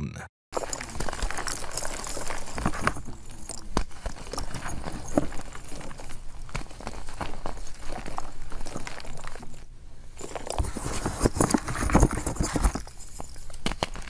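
Hands squish and crunch soft powdery balls, with close crackling and rustling.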